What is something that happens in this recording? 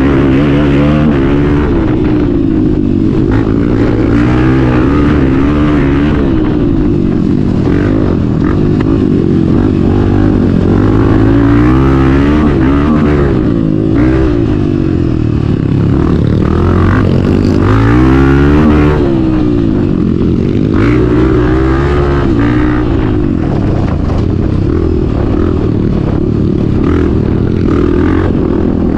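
A motorcycle engine roars up close, revving up and down as it rides.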